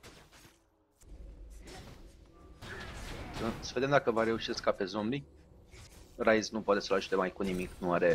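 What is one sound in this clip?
Magic blasts crackle and whoosh in a game battle.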